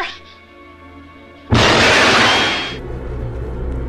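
A woman cries out in alarm.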